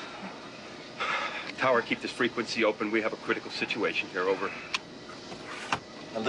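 A middle-aged man speaks urgently into a radio microphone.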